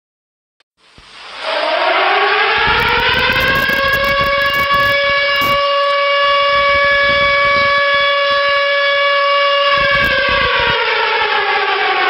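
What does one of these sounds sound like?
A tornado siren wails loudly from a phone speaker, rising and then holding steady.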